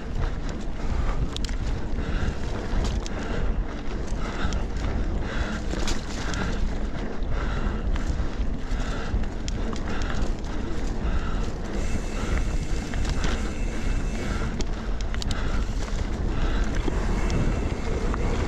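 Wind rumbles steadily against a microphone.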